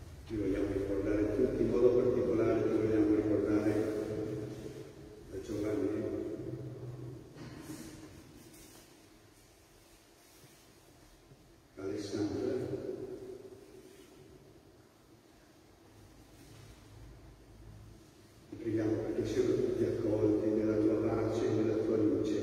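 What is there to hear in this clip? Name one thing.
An elderly man chants slowly through a microphone in a large echoing hall.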